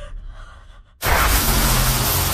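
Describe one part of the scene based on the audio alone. Metal grinds loudly against metal.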